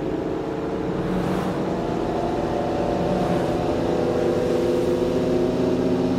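Tyres roll on a wet road.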